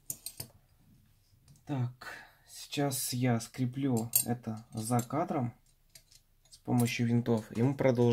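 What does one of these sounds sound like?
Small metal parts clink as they are picked up.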